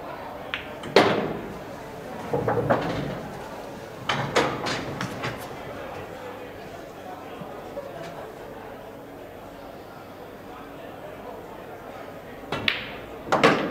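Pool balls clack together and roll across the cloth.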